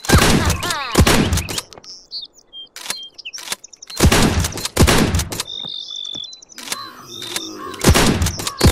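Pistol shots fire one after another, each with a short ringing tail.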